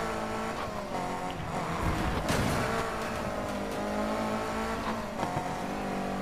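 A car engine roars steadily at high revs.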